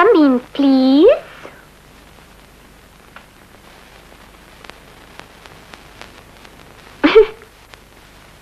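A young woman cries out in a high, gliding voice close by.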